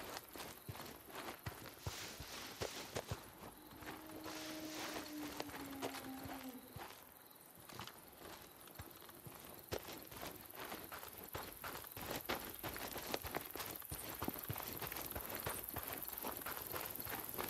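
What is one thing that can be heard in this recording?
Keyboard keys click rapidly and unevenly.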